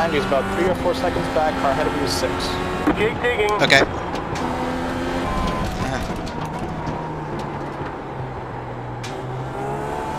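A racing car engine drops in pitch as the car brakes and shifts down.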